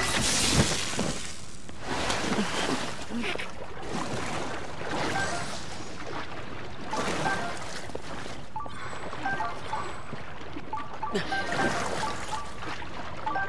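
Water splashes as a figure swims.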